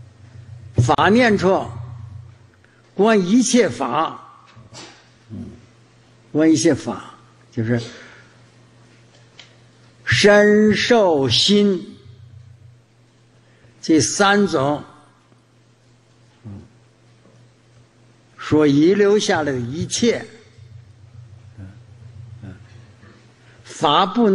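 An elderly man speaks slowly and calmly into a microphone, in short phrases with long pauses.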